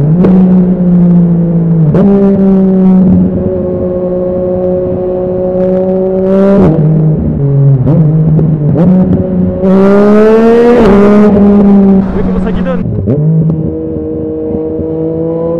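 A motorcycle engine roars loudly up close, revving up and dropping between gear changes.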